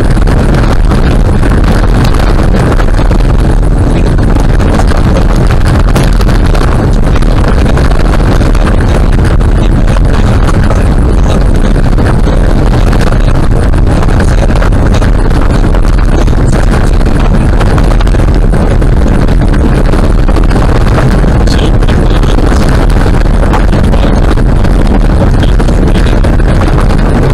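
Tyres rumble and crunch steadily on a gravel road.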